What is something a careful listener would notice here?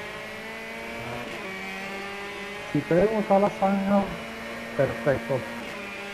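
A racing car engine hums steadily at high speed.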